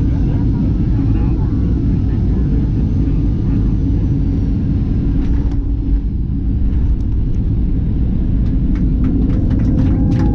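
A jet engine roars loudly and steadily close by.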